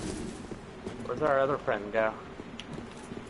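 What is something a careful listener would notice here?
A young man speaks briefly through a microphone.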